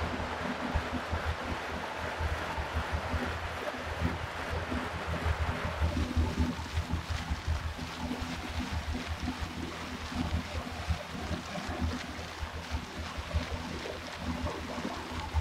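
An indoor bike trainer whirs steadily.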